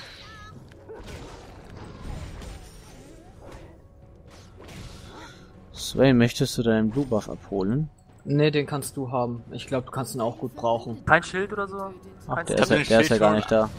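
Game creatures clash with sharp hits and magic bursts.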